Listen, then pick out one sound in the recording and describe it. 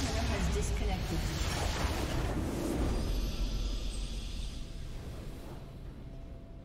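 A deep explosion booms and rumbles, then slowly fades.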